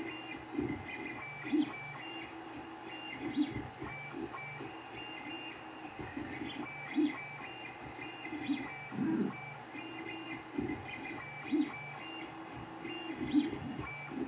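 A 3D printer's stepper motors whir and buzz in changing tones as the print head moves.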